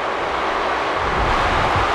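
A body thuds heavily onto a wrestling mat.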